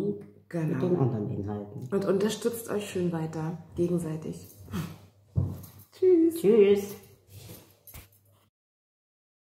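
A young woman speaks animatedly into a nearby microphone.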